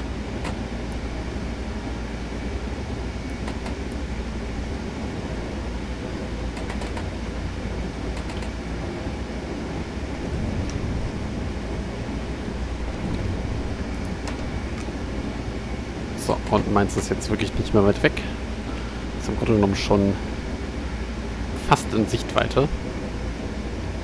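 An electric train rumbles steadily as it rolls along the track.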